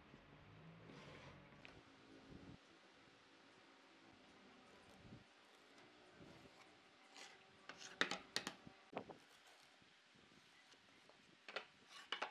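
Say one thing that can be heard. Wooden boards knock and clatter on a wooden workbench.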